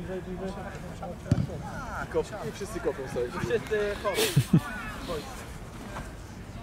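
A man speaks calmly outdoors to a group.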